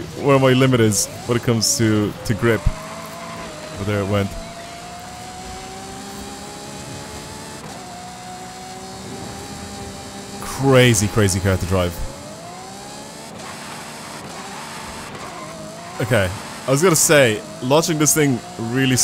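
A sports car engine drones and rises in pitch as the car speeds up.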